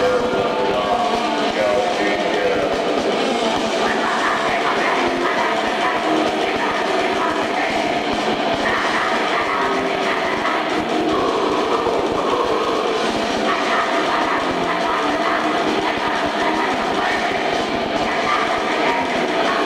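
Drums pound hard and fast.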